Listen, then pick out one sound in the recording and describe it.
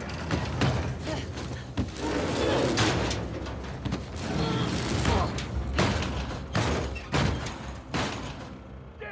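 Hands rummage and clatter through metal boxes.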